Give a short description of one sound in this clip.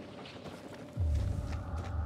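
A heavy thud sounds as someone lands from a jump.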